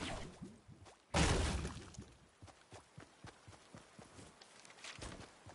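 Game footsteps patter quickly as a character runs.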